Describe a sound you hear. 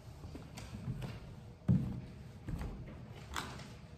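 Footsteps tap across a hard floor.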